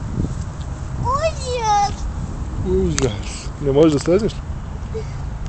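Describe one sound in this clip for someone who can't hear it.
A young girl talks close by in a high voice.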